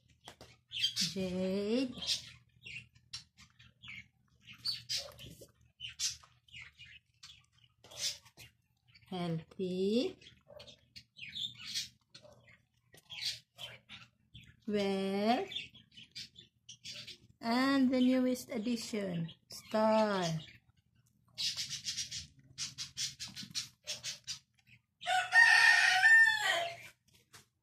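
A cat meows loudly several times.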